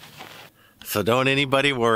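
A middle-aged man talks cheerfully close to the microphone.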